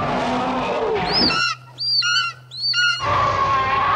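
Eagles screech loudly overhead.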